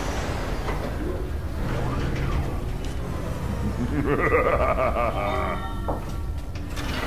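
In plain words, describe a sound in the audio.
A mechanical arm whirs and clanks as it moves.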